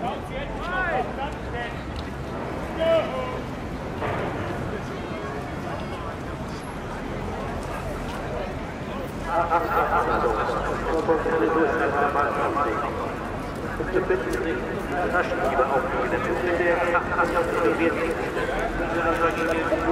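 A large crowd chatters in a steady murmur outdoors.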